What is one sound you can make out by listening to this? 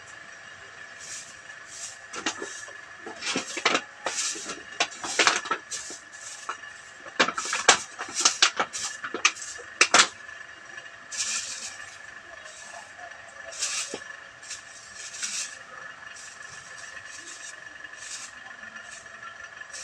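A broom sweeps and scrapes over ash and straw.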